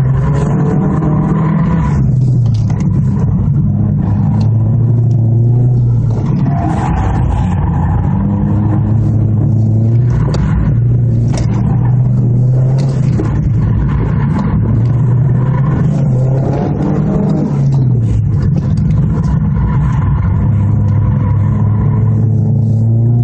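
Tyres squeal on pavement.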